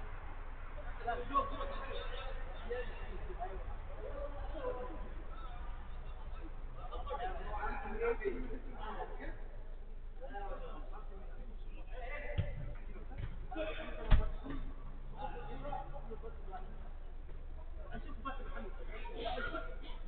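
Men shout and call out to each other across an echoing indoor pitch.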